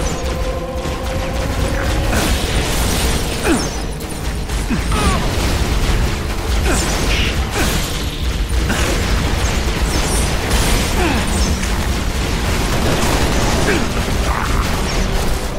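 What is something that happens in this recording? Energy weapons fire in rapid crackling bursts.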